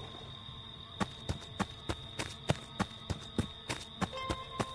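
Quick footsteps thud on soft forest ground.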